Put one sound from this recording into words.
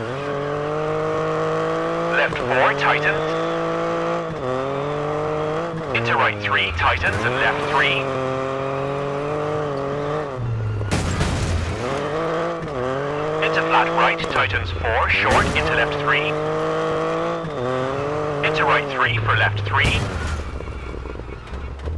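A rally car engine revs high, rising and dropping with each gear change.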